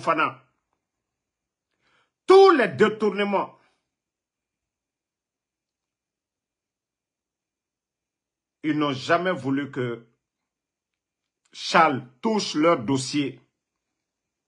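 A young man speaks close to a microphone, in short bursts with pauses.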